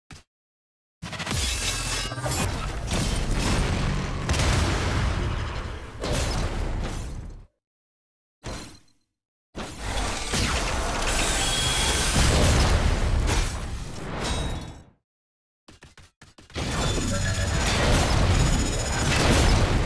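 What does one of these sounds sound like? Energy blasts and explosions roar in loud bursts.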